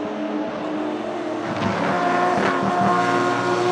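A racing car engine backfires with sharp pops.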